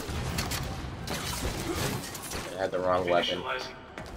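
Gunfire bursts from a game.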